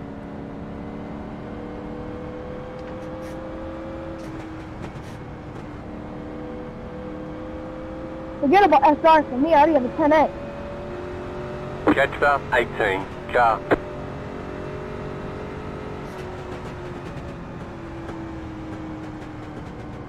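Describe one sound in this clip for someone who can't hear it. A race car engine drones steadily, its pitch slowly rising and falling.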